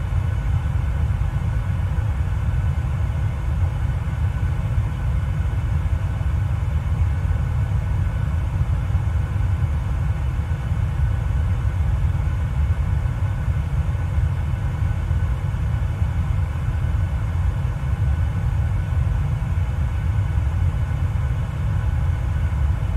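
Jet engines roar with a steady, deep drone.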